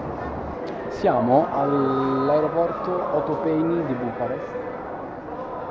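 A young man talks close by, calmly.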